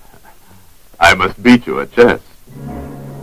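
A man speaks in a conversation.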